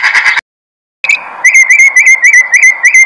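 A mockingbird sings repeated high whistling notes.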